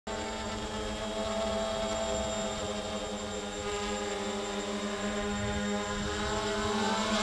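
A drone's propellers buzz and whine steadily close by.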